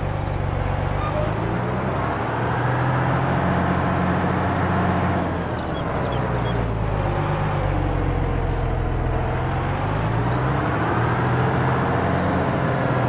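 A tractor engine drones steadily, its pitch slowly rising and falling.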